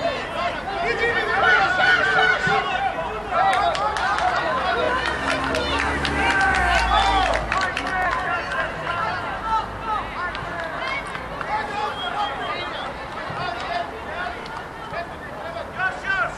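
Players call out to each other across the pitch.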